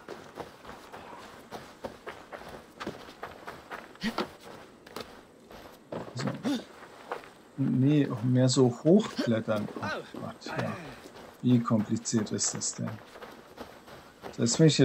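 Footsteps crunch softly on dirt and wooden boards.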